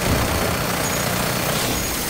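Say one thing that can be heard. A heavy gun fires a burst of shots.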